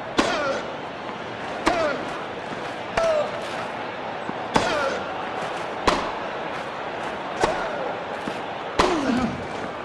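A tennis racket strikes a ball with sharp pops, back and forth.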